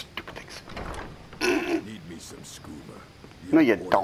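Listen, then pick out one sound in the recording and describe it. A wooden door creaks shut.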